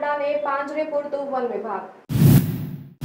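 A young woman speaks clearly and steadily into a microphone.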